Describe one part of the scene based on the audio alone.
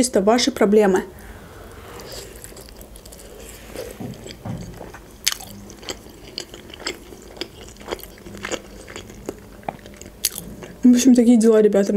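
A young woman chews and smacks crunchy food close to a microphone.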